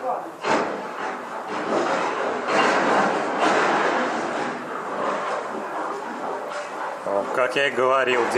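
Earth and timber collapse into a pit with a long rumbling roar.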